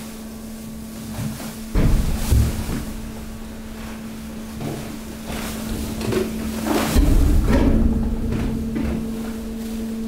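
Rubbish crunches and rustles as it is pushed along.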